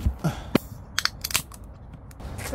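A drink can pops open with a sharp hiss.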